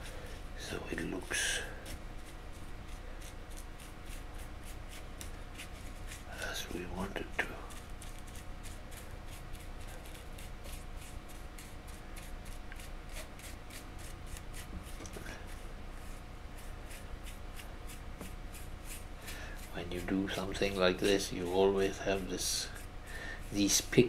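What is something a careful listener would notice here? A small brush scrapes softly against a metal surface.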